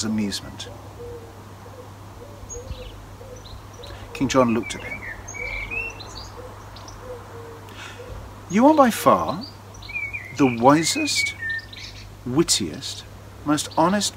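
An older man speaks close by with animation, in pauses.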